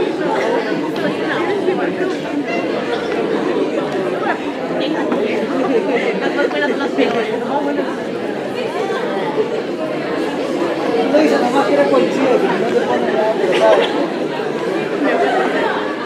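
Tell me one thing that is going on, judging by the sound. A crowd of young people chatters and murmurs indoors.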